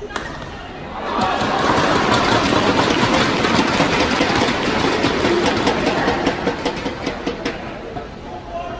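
A crowd applauds and cheers loudly in a large hall.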